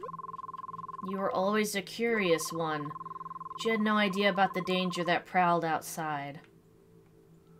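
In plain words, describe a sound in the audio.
A young woman reads aloud close to a microphone.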